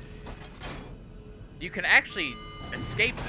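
A heavy metal lever clanks as it is pulled down.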